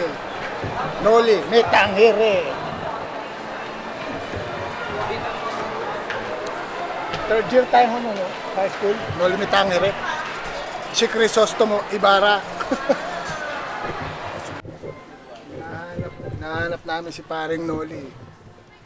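A middle-aged man talks with animation close by.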